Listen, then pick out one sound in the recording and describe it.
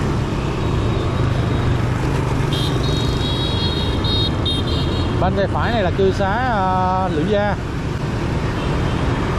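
Wind rushes past a moving motorbike.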